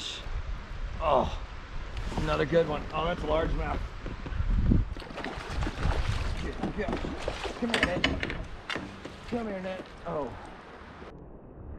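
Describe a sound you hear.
A man talks excitedly close by.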